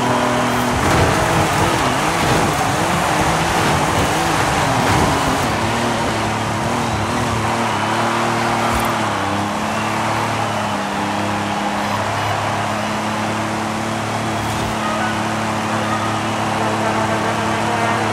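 Car tyres screech and squeal while drifting.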